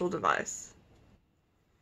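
A woman speaks briefly, close by.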